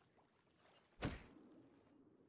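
A creature is struck with a sudden heavy thud underwater.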